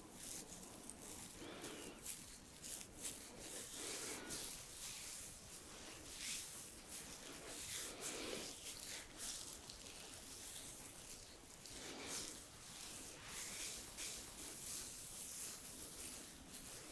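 Hands rub and stroke skin with soft, close brushing sounds.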